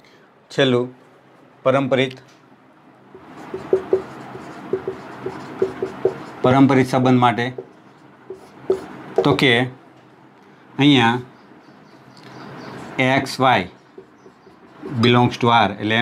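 A young man speaks calmly, explaining in short phrases.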